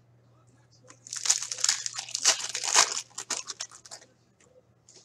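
A foil wrapper crinkles and tears as it is opened by hand.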